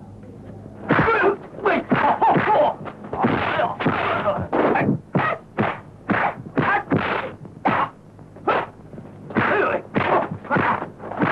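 Fists and feet thud in blows.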